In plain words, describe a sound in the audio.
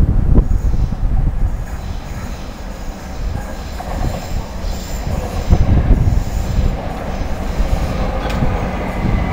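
An electric train rumbles along the tracks toward the listener.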